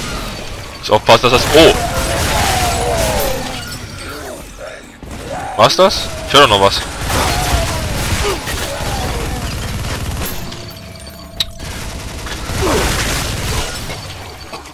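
A heavy rotary gun fires in loud, rapid bursts.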